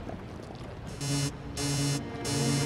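An electronic alarm beeps in repeated pulses.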